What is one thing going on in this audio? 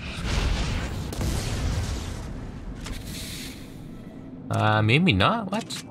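A gun fires in sharp bursts.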